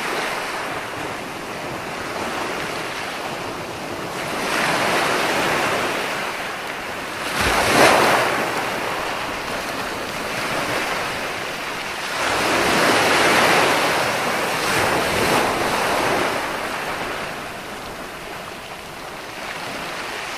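Ocean waves roll in and break on a beach, surging and washing over the sand.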